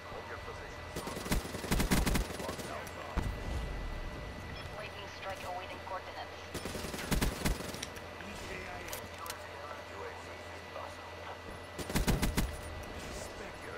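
Gunfire rattles in short, rapid bursts.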